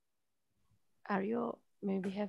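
A man speaks cheerfully over an online call.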